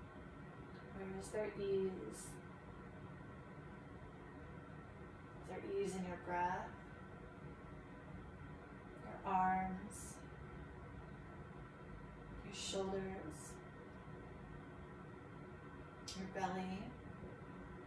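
A woman speaks calmly in short, quiet phrases with long pauses between them.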